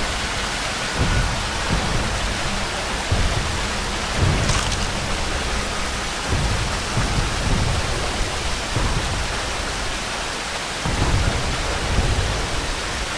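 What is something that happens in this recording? Footsteps thud softly on the ground.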